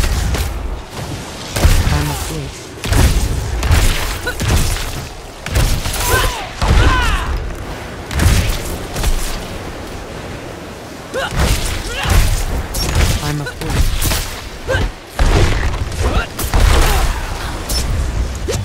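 Game spells burst and crackle with deep booming impacts.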